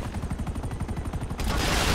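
A helicopter's rotor thumps close overhead.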